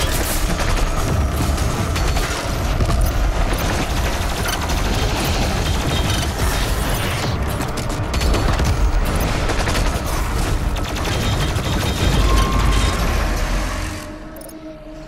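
Heavy guns fire in rapid bursts with loud blasts.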